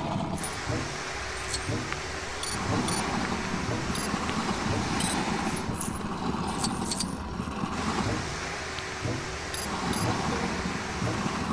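A grappling line whirs and pulls with metallic clanks.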